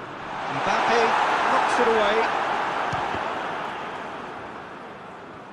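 A large stadium crowd cheers loudly, then slowly quiets down.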